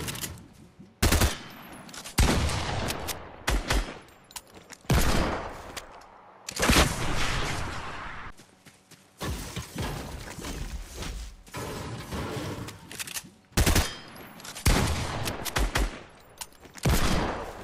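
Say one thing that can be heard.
Gunshots bang loudly in bursts.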